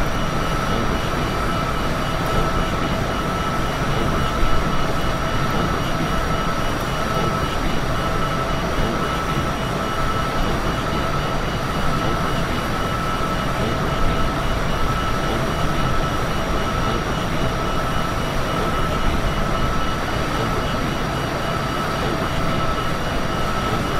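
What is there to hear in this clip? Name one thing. Jet engines roar steadily with a constant whine.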